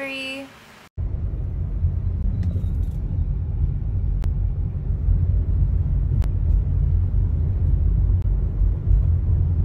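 A low road rumble fills the inside of a moving car.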